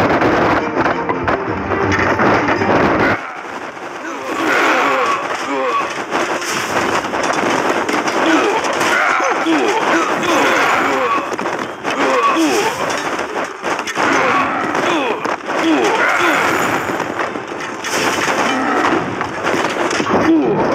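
Swords clash in a noisy battle.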